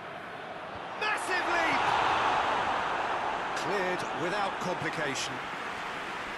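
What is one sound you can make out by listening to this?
A stadium crowd roars loudly and then fades.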